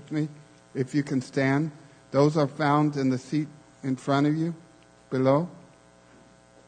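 A man speaks with animation into a microphone in a large echoing room.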